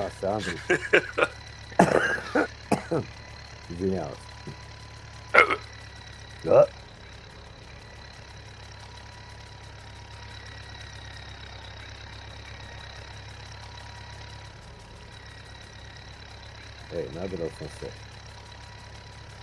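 A tractor engine putters steadily.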